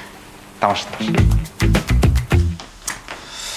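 A second man laughs, close by.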